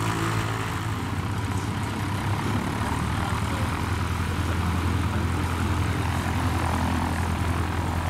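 A small propeller plane's engine idles with a rough, throbbing hum close by.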